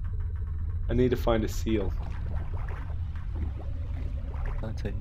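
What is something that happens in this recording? A low, steady underwater rumble drones throughout.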